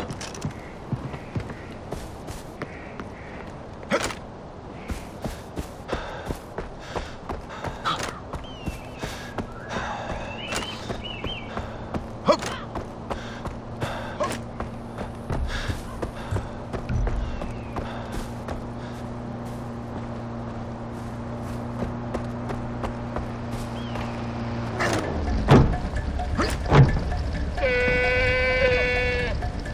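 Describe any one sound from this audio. Footsteps crunch quickly on gravel and grass.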